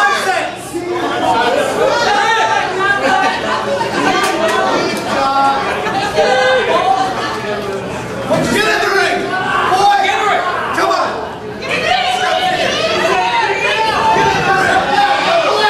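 A crowd of men and women cheers and shouts in an echoing hall.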